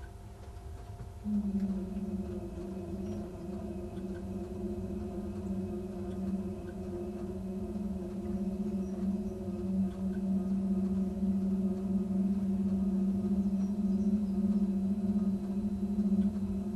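Train wheels rumble low over the rails.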